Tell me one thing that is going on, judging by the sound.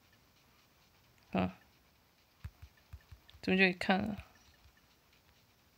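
A game menu gives short clicks as items are selected.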